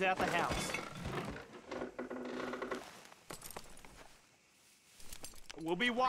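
Wagon wheels crunch and rattle over gravel.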